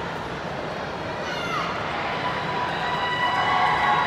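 A young woman shouts a sharp cry.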